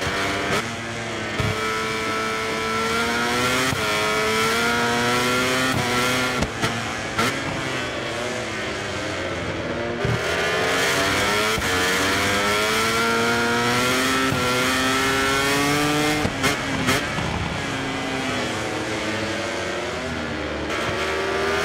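A motorcycle engine revs high, rising and falling in pitch as it shifts gears.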